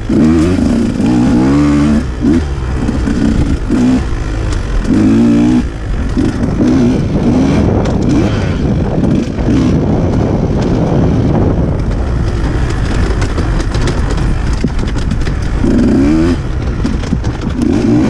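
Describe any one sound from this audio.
Knobby tyres crunch over dry leaves and dirt.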